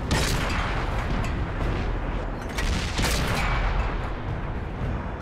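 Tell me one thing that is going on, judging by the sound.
A tank engine rumbles and clanks steadily.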